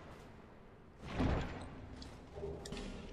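A heavy wooden chest creaks open.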